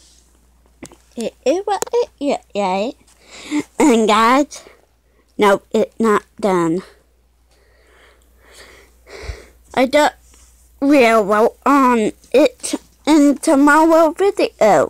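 A young woman speaks close to the microphone in a soft, animated voice.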